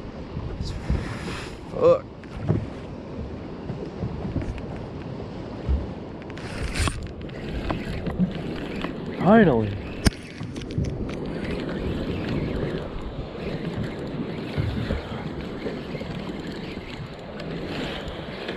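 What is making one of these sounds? Wind blusters outdoors over open water.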